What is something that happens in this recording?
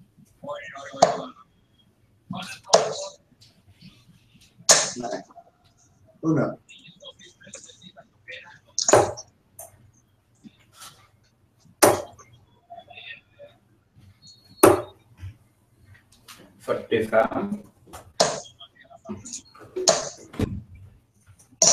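Darts thud into a bristle dartboard.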